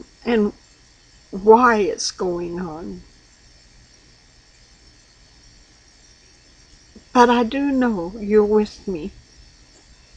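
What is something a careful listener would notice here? An elderly woman speaks slowly and calmly, close to a microphone.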